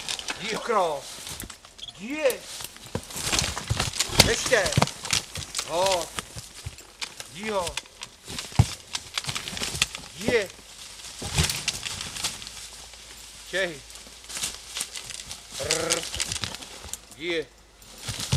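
A horse munches and crunches leaves close by.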